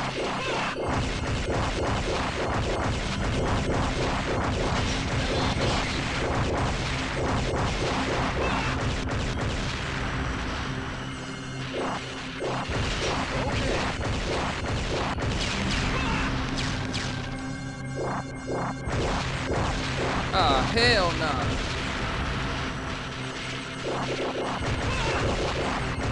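Game explosions boom.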